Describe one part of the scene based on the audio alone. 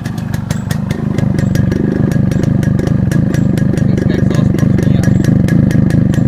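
A motorcycle exhaust pops and burbles loudly up close.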